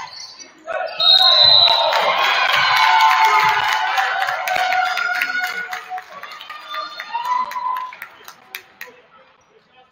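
A crowd of spectators cheers and shouts loudly, then dies down.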